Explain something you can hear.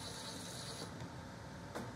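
A drill whirs briefly.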